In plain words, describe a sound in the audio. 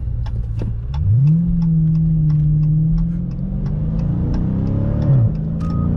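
A car engine revs up as the car speeds up.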